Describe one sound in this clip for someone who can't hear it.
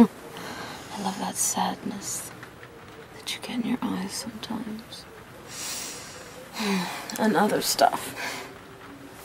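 A young woman speaks softly and tenderly nearby.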